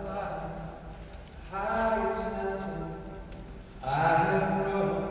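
A man sings sustained notes through a microphone in a large echoing hall.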